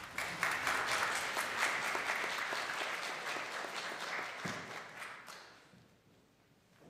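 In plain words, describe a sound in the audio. An audience applauds in a large echoing hall, the clapping fading away.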